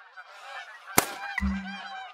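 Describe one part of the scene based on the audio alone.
A rifle shot cracks.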